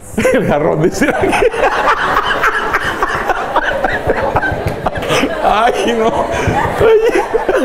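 A man laughs heartily into a microphone.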